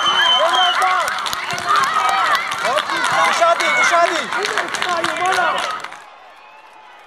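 Young boys shout and cheer outdoors.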